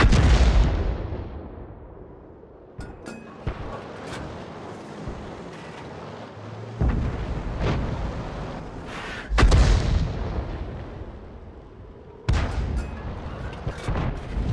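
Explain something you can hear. A tank cannon fires with a heavy boom that rumbles away.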